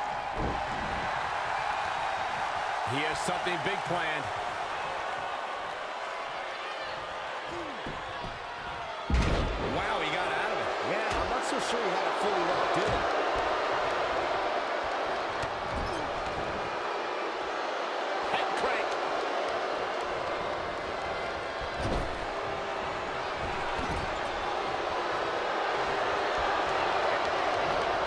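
A large crowd cheers and roars steadily in a big arena.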